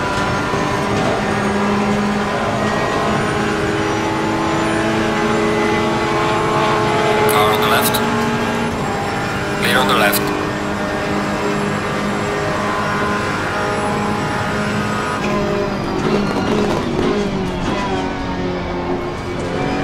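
A race car engine roars steadily at high revs, shifting gears.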